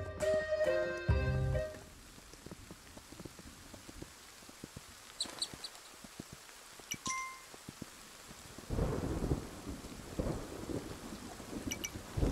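A horse's hooves thud steadily at a gallop.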